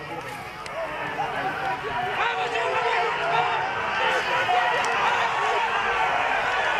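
A crowd of men and women cheers and shouts loudly outdoors.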